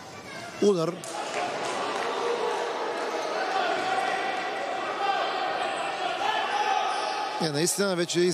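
Players cheer and shout loudly in a large echoing hall.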